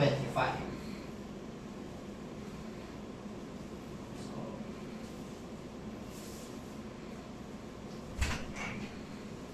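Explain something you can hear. A broom sweeps across a hard floor with a soft scratching.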